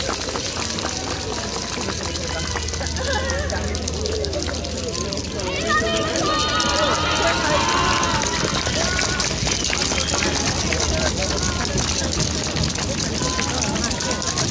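A large group of dancers shouts together outdoors.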